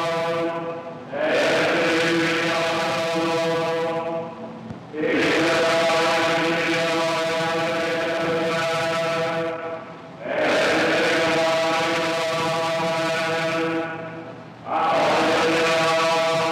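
A choir of men chants in unison in phrases, echoing through a large hall.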